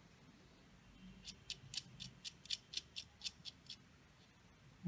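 A small screw clicks as it is tightened into a metal chassis.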